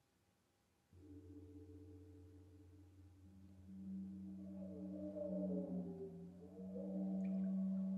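A deep metallic drone rings out steadily and swells.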